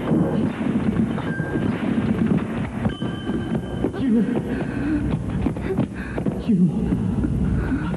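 An elderly man shouts loudly and urgently.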